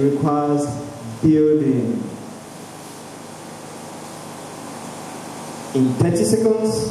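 A young man speaks into a microphone over loudspeakers, pausing between phrases.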